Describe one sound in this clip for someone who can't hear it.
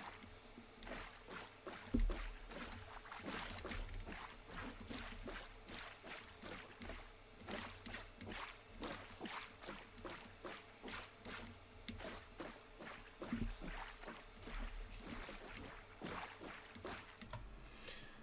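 Boat paddles splash rhythmically through water.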